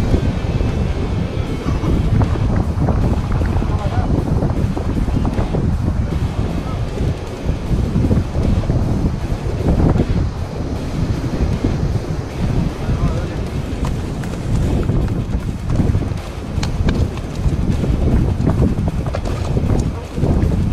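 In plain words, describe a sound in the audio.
Wind blows hard across the microphone.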